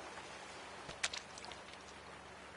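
A lure splashes into the water.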